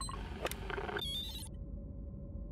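A device gives a short rising confirmation chime.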